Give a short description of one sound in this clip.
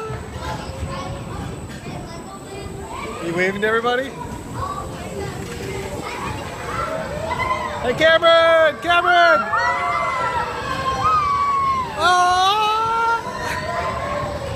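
Children shout and cheer excitedly.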